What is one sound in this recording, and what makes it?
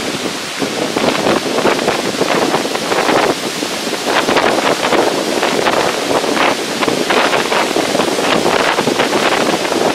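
Rough waves crash and roar onto the shore.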